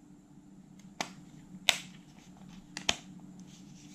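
The metal casing halves of a personal cassette player snap together with sharp clicks.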